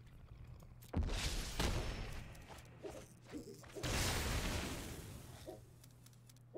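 Magical game effects whoosh and boom loudly.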